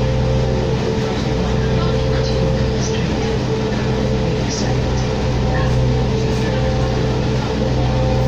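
A bus engine hums steadily while riding.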